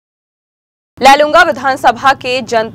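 A young woman reads out the news calmly through a microphone.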